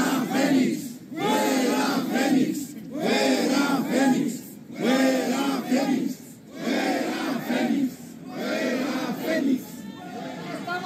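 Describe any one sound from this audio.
A large crowd chants loudly in rhythmic bursts outdoors.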